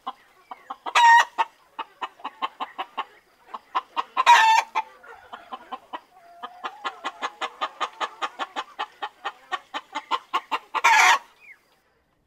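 A rooster gives short, loud squawking calls.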